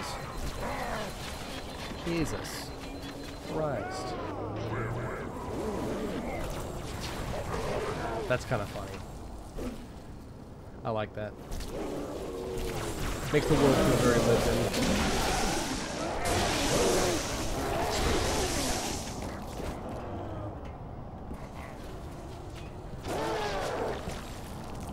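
A sword hums and crackles electrically.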